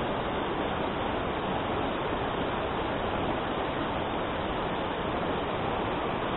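A shallow stream rushes loudly over rocks close by.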